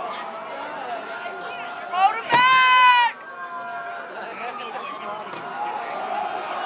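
A crowd of spectators talks and cheers outdoors.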